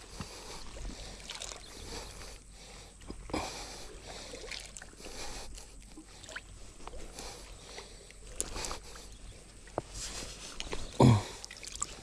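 A fishing line splashes lightly into calm water.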